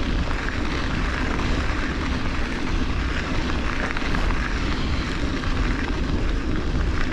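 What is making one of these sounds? Bicycle tyres crunch steadily over a gravel track.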